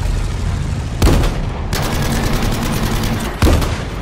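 Gunshots crack.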